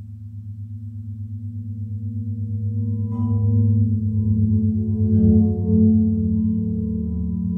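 A turntable's motor hums steadily with a fast rhythmic pulse, growing louder.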